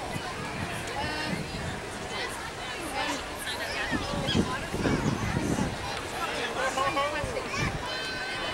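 A young woman talks animatedly and close by to a small child.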